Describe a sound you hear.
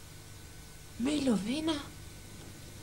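A young woman speaks with surprise into a telephone.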